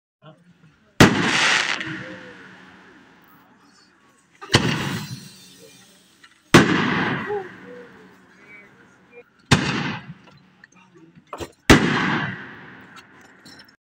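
Fireworks crackle and fizzle after bursting.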